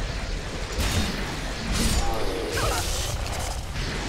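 A spear swishes and strikes in a fight.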